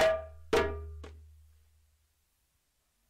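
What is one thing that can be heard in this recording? A hand drum is struck a few times and rings out.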